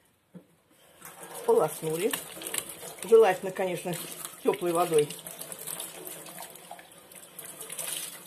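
Water runs from a tap and splashes into a sink.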